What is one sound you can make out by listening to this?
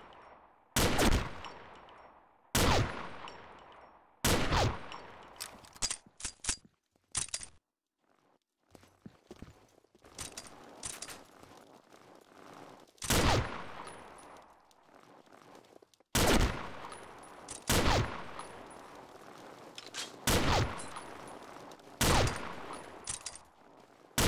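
Loud rifle shots ring out one at a time, each echoing away.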